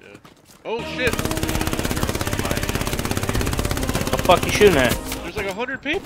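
A submachine gun fires in long rapid bursts.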